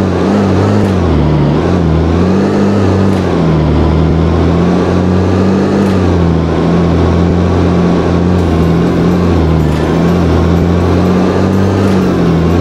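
A car engine hums steadily, its pitch wavering up and down.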